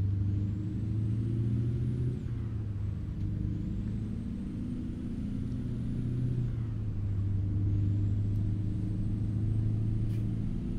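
Tyres rumble on a highway.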